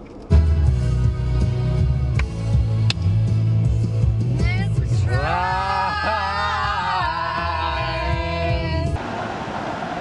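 Young men and women sing loudly together, close by.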